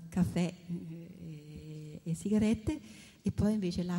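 A woman laughs close to a microphone.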